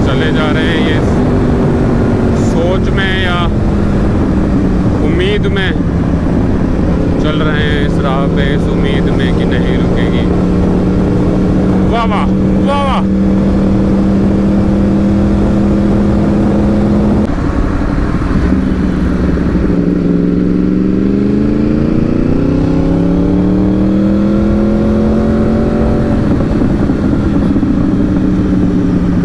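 A motorcycle engine hums steadily at speed, rising and falling in pitch.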